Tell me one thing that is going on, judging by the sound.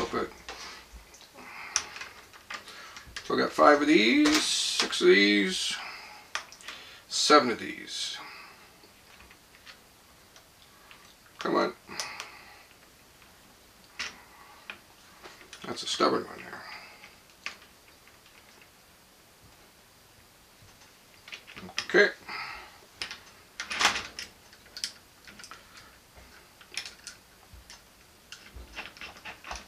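Metal rods clink and tap against a metal surface.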